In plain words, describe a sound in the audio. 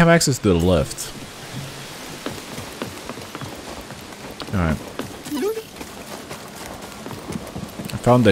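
Footsteps run over wooden planks.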